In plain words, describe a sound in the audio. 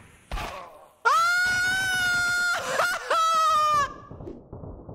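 A young man shouts excitedly into a close microphone.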